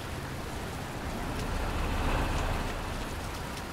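A truck engine rumbles as it drives past.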